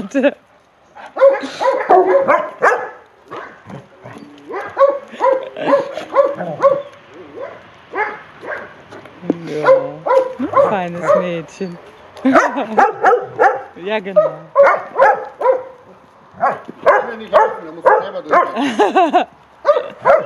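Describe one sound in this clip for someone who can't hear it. Dogs whine and yelp playfully close by.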